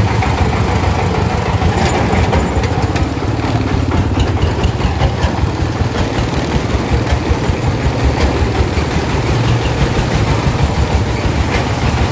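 A small diesel engine chugs loudly nearby at a steady, rapid beat.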